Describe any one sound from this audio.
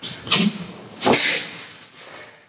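A martial arts uniform snaps sharply during a kick.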